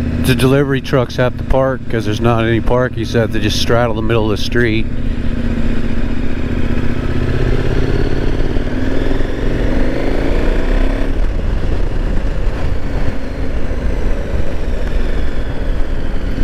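A motorcycle engine hums steadily and rises and falls in pitch as it changes speed.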